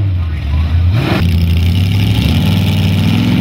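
A hot rod engine revs loudly nearby.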